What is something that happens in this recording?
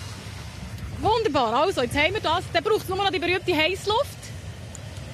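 A young woman speaks with animation into a microphone outdoors.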